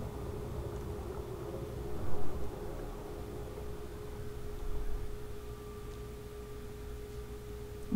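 A submersible's motor hums steadily underwater.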